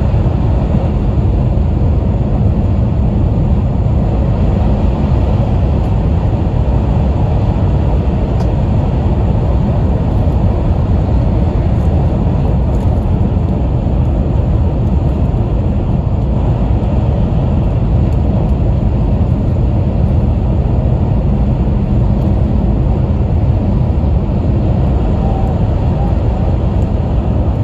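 A train rumbles steadily as it speeds along the tracks.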